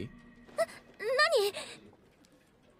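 A young woman exclaims in surprise.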